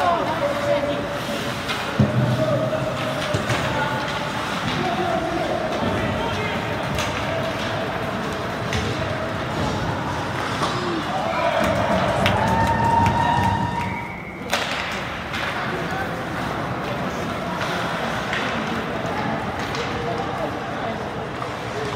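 Hockey sticks click against the puck.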